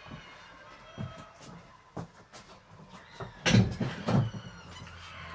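Close thuds and knocks sound as a person moves about nearby.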